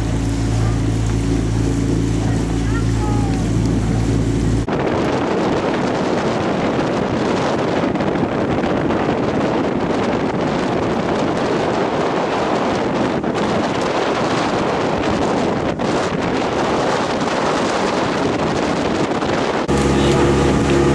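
Oars splash in the water as a crew rows past.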